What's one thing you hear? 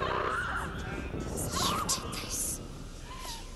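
A man groans and gasps hoarsely in pain close by.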